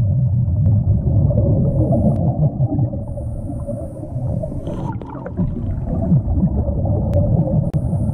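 Air bubbles from a diver's breathing gurgle and rumble underwater.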